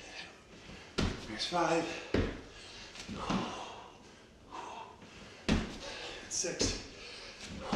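Feet thump heavily on a wooden floor.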